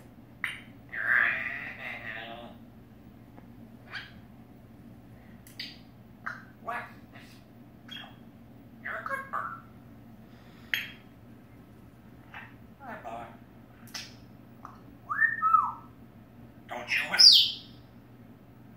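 A parrot squawks close by.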